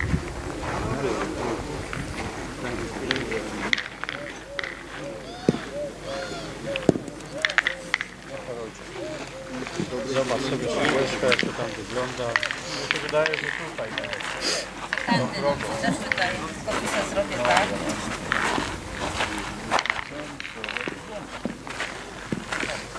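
Adults talk in the open air nearby.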